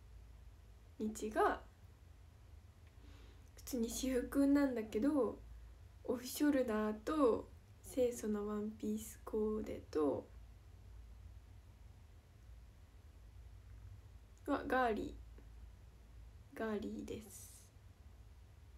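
A young woman speaks calmly and close to a microphone, with pauses.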